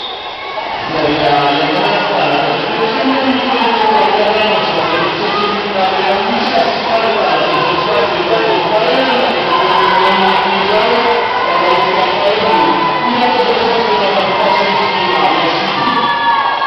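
Swimmers splash and churn the water.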